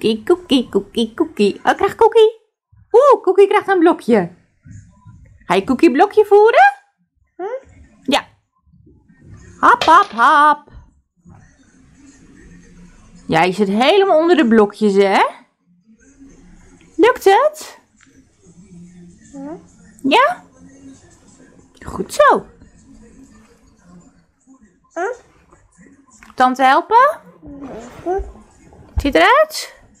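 A woman speaks in a high, playful voice close by.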